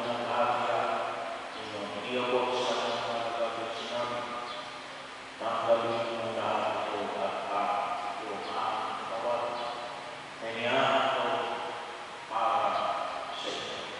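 A man speaks steadily into a microphone, heard over loudspeakers in a large echoing hall.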